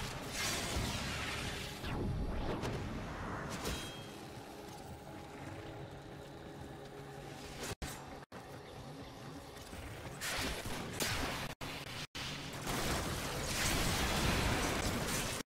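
Energy blasts hiss and crackle in bursts.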